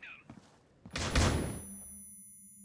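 A stun grenade goes off with a sharp bang.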